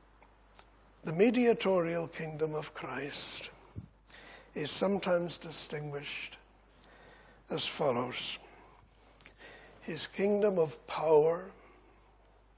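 An elderly man speaks with emphasis into a microphone, in short bursts with pauses.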